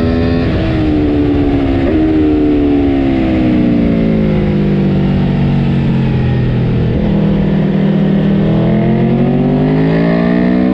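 A motorcycle engine roars loudly up close, its pitch sinking as it slows and then climbing again.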